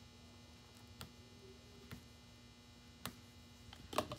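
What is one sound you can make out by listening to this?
Pliers click softly against wire.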